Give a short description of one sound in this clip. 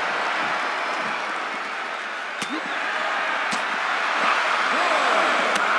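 A large crowd roars and cheers steadily.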